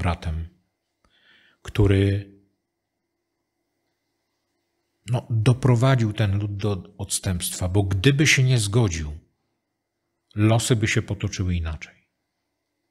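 An older man speaks calmly into a microphone, pausing between phrases.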